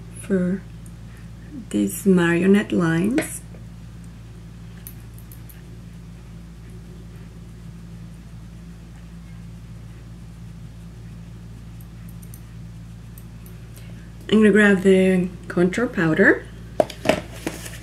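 A young woman talks calmly and close up.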